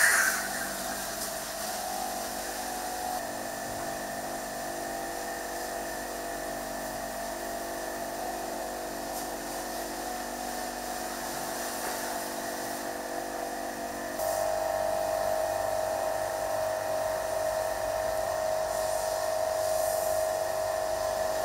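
A pressure washer sprays water in a steady hiss.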